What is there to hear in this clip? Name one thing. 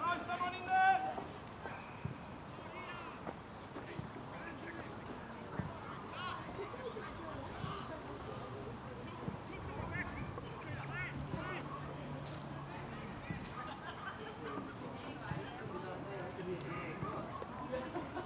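Players shout to each other across an open field, heard from a distance.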